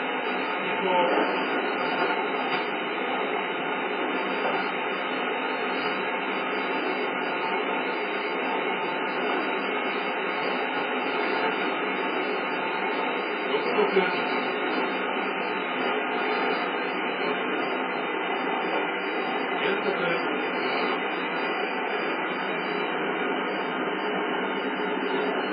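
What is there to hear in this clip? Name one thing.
A train's wheels rumble steadily on the track through a small loudspeaker.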